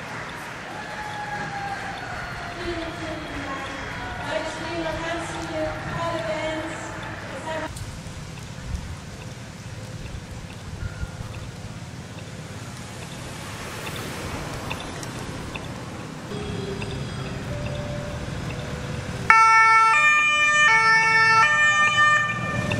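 Motorcycle engines rumble past.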